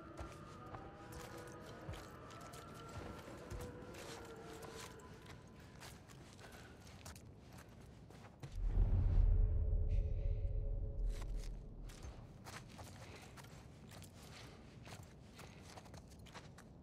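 Soft footsteps creep slowly across a hard floor.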